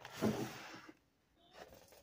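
A plastic bag crinkles.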